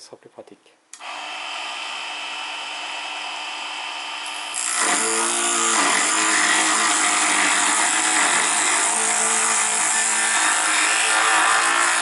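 A small lathe motor whirs steadily.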